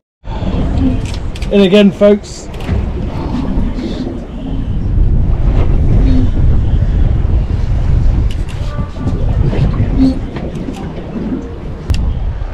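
A fishing reel is cranked.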